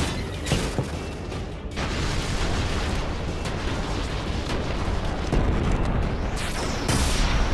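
A heavy machine rumbles and clanks.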